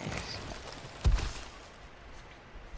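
A heavy blow smashes into rock and debris.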